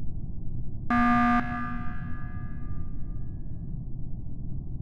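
A loud alarm blares once and rings out.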